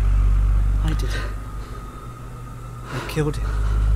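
A man speaks quietly and tensely nearby.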